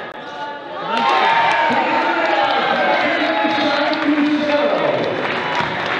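A crowd cheers loudly after a basket.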